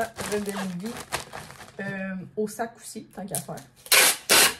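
A young woman talks calmly close to the microphone.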